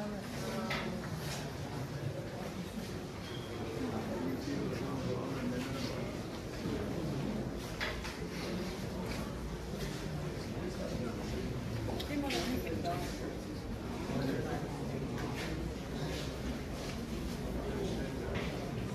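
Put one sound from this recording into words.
A crowd of adults murmurs and chats quietly in a large room.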